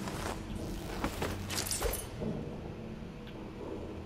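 A heavy body drops onto a wooden floor.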